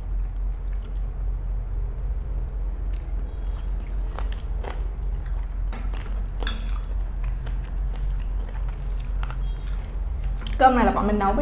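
Chopsticks click and tap against dishes.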